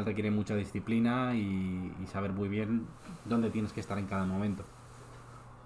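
A man speaks loudly.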